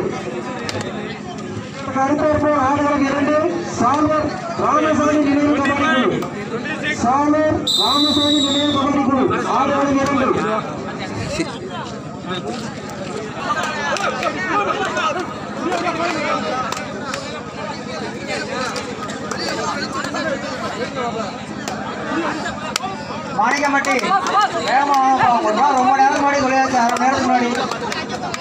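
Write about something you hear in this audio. A crowd of spectators shouts and cheers loudly outdoors.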